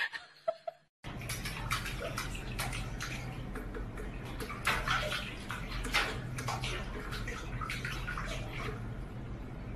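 A cat splashes its paw in water in a sink.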